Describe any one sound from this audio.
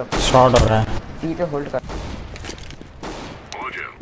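A pistol is drawn with a short metallic click.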